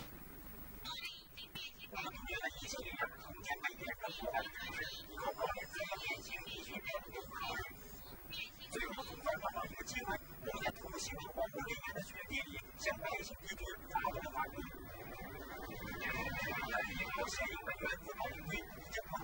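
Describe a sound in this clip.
A middle-aged man speaks calmly and steadily.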